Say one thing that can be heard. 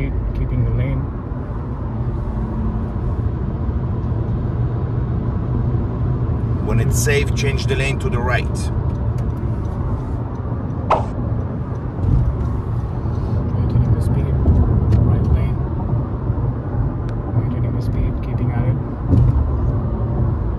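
Tyres hum steadily on a highway inside a moving car.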